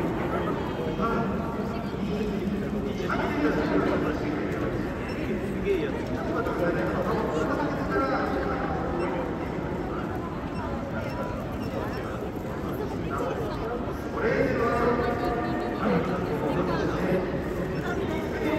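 Young women talk and call out cheerfully nearby.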